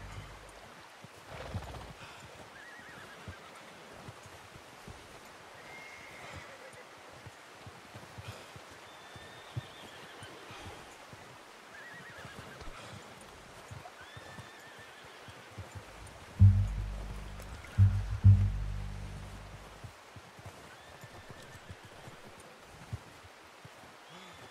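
A horse's hooves thud softly in snow.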